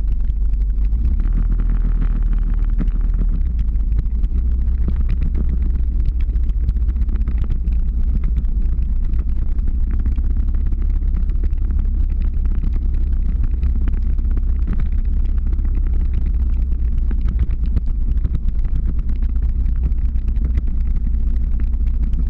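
Skateboard wheels roll and rumble steadily on asphalt.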